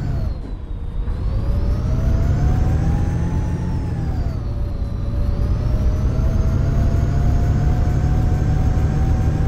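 A bus engine hums and whines, rising and falling in pitch as the bus speeds up and slows down.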